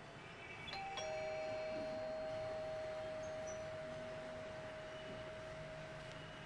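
An electric doorbell rings with a steady tone.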